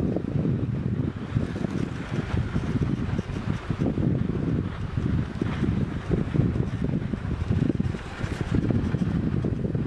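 Wind buffets loudly against the microphone outdoors.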